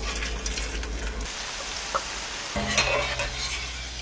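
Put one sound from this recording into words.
Hot oil sizzles and bubbles.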